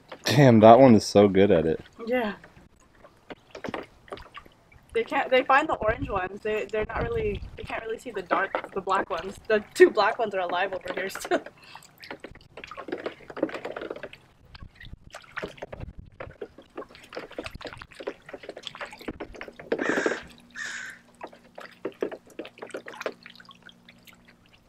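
Water splashes and drips as ducks paddle and dip their bills.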